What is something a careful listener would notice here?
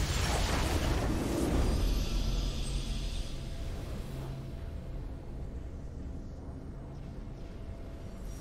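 A triumphant fanfare swells and then slowly fades.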